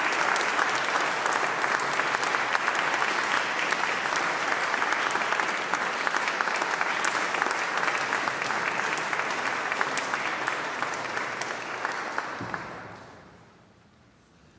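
An audience claps in a large echoing hall, then the applause fades away.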